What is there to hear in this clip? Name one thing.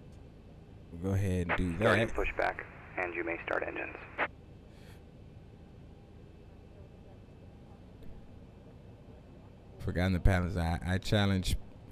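A young man talks with animation, close to a headset microphone.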